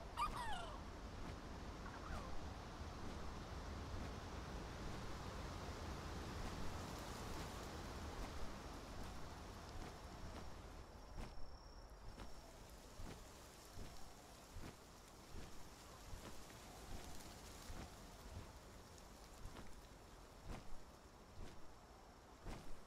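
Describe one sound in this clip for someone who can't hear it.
Large wings flap in repeated beats.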